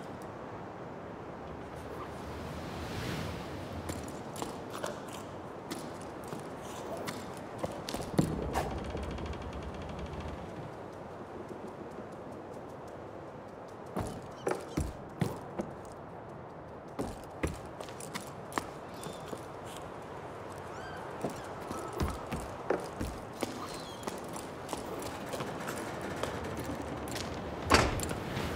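Footsteps tap on wooden boards and stone.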